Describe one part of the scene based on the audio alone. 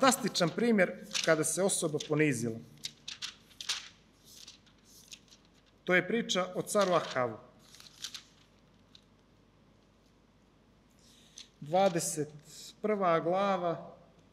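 A man reads aloud calmly into a microphone, in bursts with pauses.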